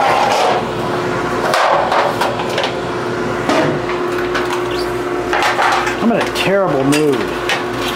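A metal baking tray clatters on a countertop.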